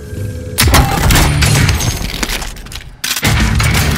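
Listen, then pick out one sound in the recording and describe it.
A supply crate opens with a loud clatter.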